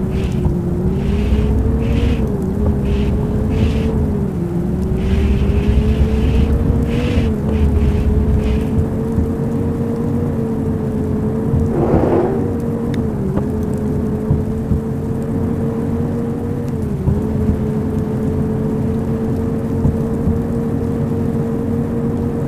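A bus engine hums steadily, its pitch shifting as the bus speeds up and slows down.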